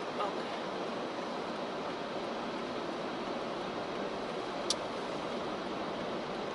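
A car engine hums steadily inside the car.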